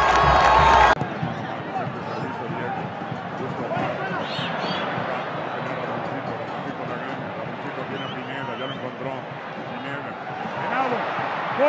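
A stadium crowd murmurs faintly in the distance.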